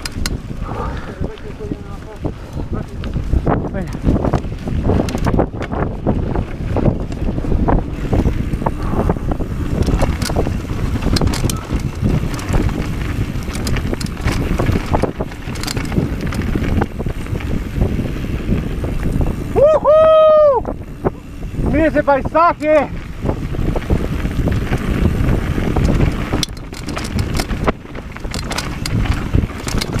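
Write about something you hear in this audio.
A mountain bike's frame and chain clatter over bumps.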